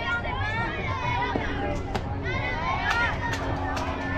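A softball smacks into a catcher's mitt.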